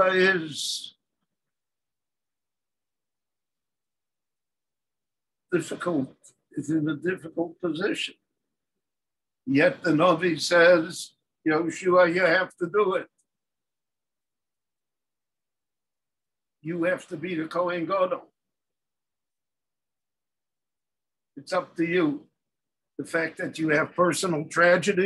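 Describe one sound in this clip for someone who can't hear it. An elderly man talks calmly in short bursts, heard close through a microphone.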